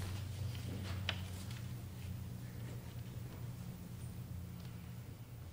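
Footsteps shuffle softly as people step into place.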